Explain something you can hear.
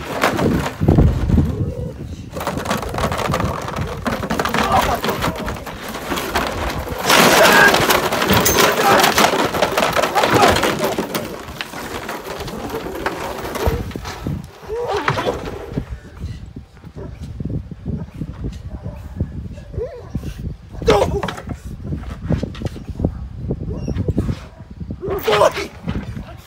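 A dog growls and snarls while biting and tugging.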